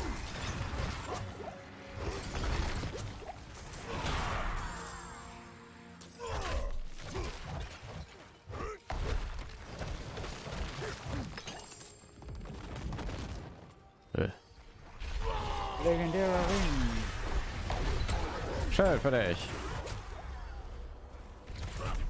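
Blows and impacts thud in quick bursts.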